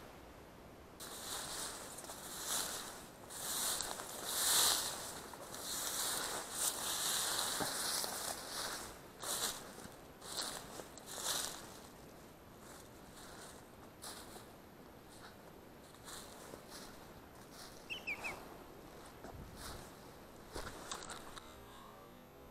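Footsteps brush through tall dry grass.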